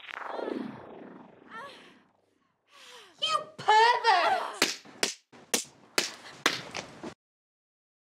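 A woman screams in fright.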